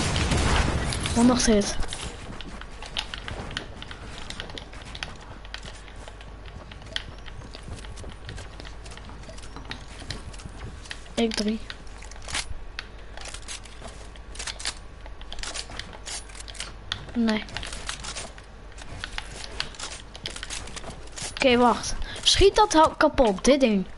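Wooden building pieces snap into place with quick clacks.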